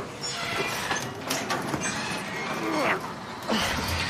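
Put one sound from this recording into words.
A metal roller door rattles as it rolls open.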